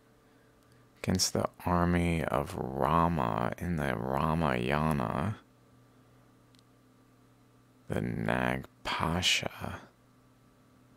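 A young man speaks calmly and closely into a microphone.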